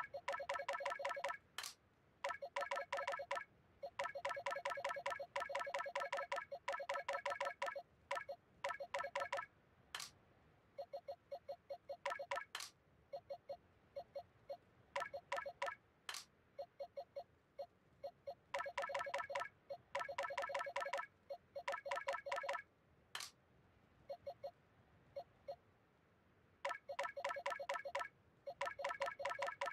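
Short electronic menu blips tick rapidly in bursts.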